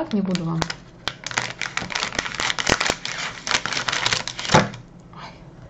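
Scissors snip through a crinkly plastic bag.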